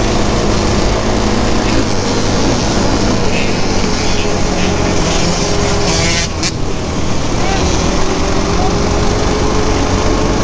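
Dirt bike and quad engines whine and rev nearby.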